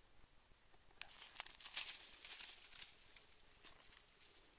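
A dog runs through dry leaves, rustling them.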